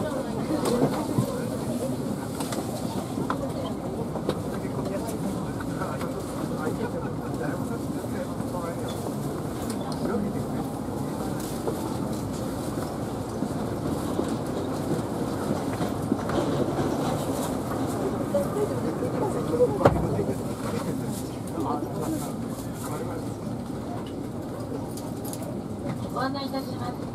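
A low, steady hum fills a train carriage.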